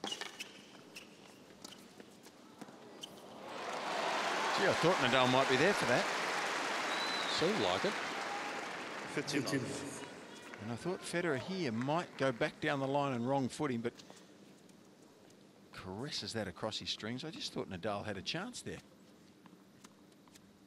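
A tennis ball is struck sharply by rackets back and forth.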